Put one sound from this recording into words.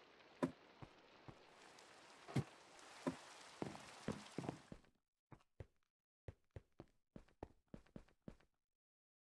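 Stone blocks thud one after another as they are placed.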